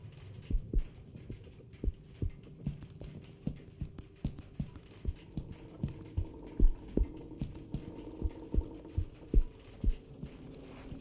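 Footsteps thud on a wooden floor at a steady walking pace.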